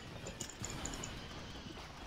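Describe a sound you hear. Blaster bolts fire with sharp zaps.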